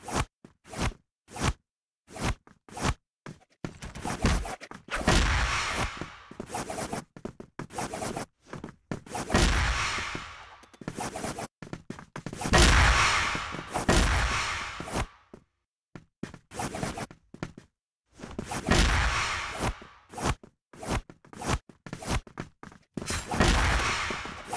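A heavy melee weapon whooshes and strikes in quick, repeated bursts.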